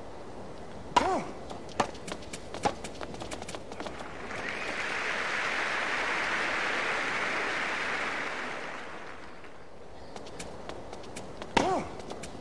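Tennis rackets strike a ball in a rally.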